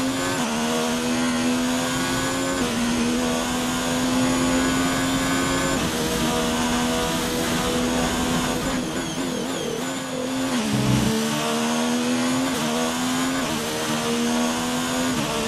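A racing car engine screams at high revs, rising through the gears and dropping as it brakes.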